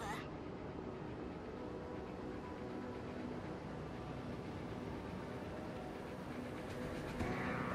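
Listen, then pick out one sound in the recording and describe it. A warship's engines rumble low and steadily.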